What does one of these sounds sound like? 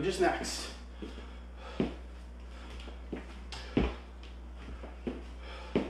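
Shoes thud on a hard floor as a man steps.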